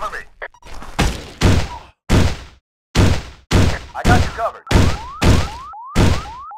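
A pistol fires a rapid series of loud, echoing shots.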